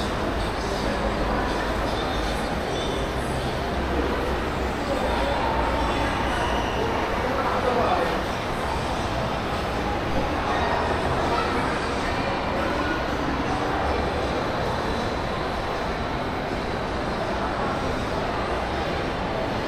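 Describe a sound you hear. A large indoor hall hums with a steady murmur of distant crowd noise and echo.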